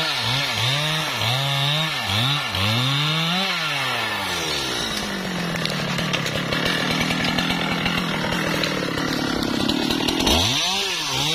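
A chainsaw engine revs up and down loudly, idling in between.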